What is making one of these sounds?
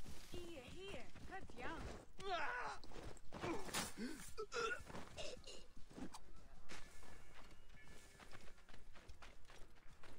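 A horse's hooves gallop over dirt.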